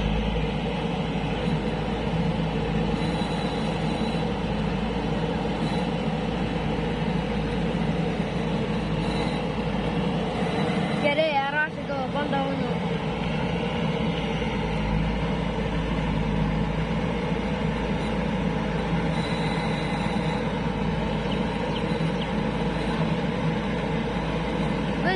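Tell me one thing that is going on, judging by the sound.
A backhoe loader's diesel engine rumbles steadily close by.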